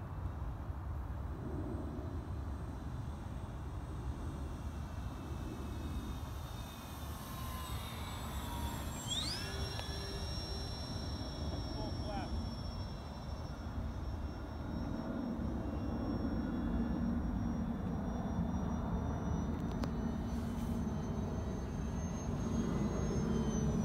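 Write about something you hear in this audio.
A model airplane's engine whines high overhead, its pitch dropping as it passes and then holding steady.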